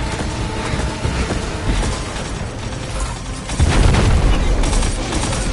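Energy blasts crackle and boom.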